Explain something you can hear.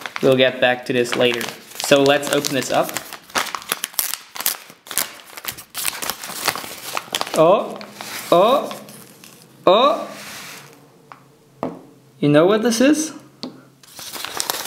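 A padded paper envelope crinkles and rustles as it is handled.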